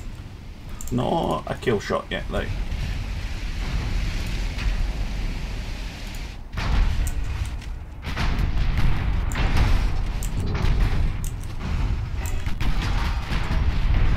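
Waves wash and roar around a ship.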